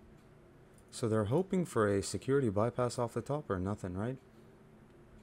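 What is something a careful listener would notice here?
A young man speaks calmly into a close microphone.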